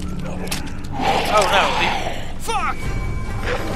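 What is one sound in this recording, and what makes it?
A creature growls and snarls close by.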